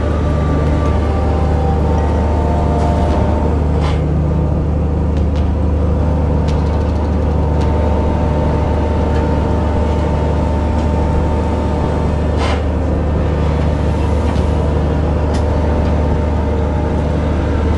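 A winch hauls a net with a rhythmic, pulsing drone.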